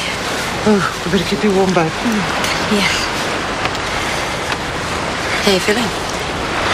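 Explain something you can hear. A woman speaks warmly and softly up close.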